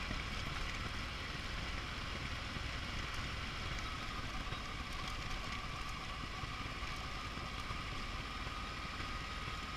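Tyres crunch over a gravel road.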